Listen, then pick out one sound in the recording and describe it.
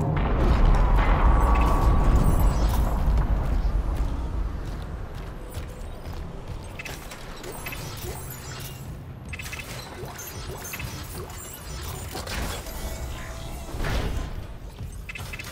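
Heavy armoured boots clank on a metal floor.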